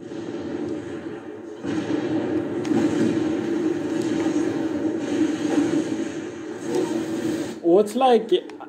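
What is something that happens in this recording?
Video game sounds play from a television speaker.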